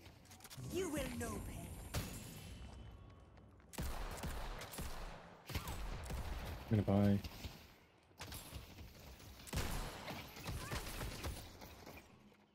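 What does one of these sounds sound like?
Weapons fire in rapid bursts.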